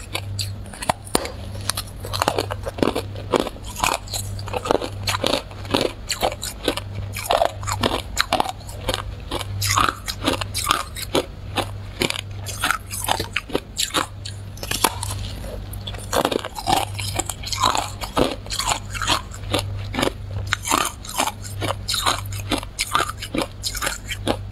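Ice crunches loudly and close as a young woman chews it.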